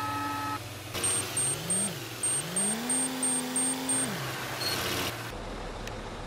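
A truck engine revs up and down.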